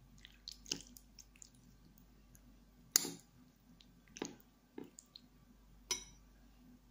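A metal spoon clinks against a ceramic bowl.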